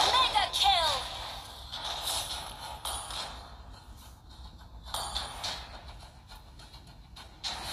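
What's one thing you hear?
Game sound effects whoosh and clash in quick bursts.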